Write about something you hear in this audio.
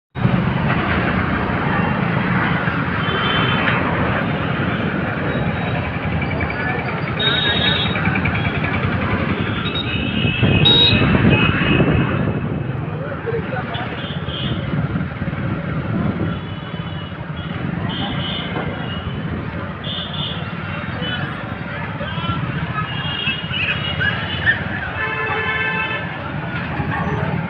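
A motorbike engine rumbles steadily while riding.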